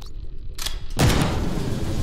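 Gunfire and impacts crack in short bursts.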